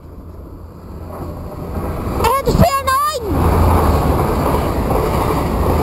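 A train pulls into a station with a rising rumble.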